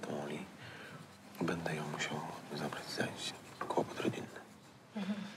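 A man speaks calmly and politely.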